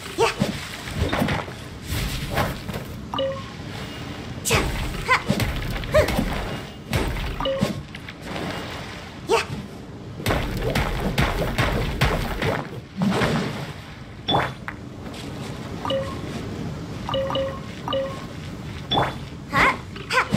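A sword slashes and whooshes through the air again and again.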